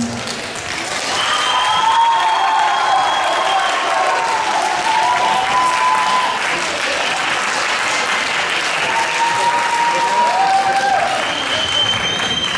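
Young girls sing together in a large echoing hall.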